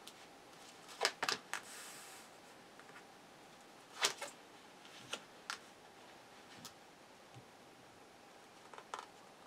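Cards tap softly as they are dealt onto a table.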